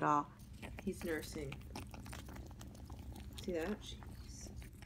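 A kitten mews in short, high cries close by.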